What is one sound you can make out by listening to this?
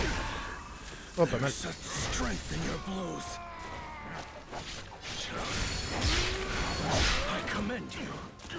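Magic blasts burst and crackle.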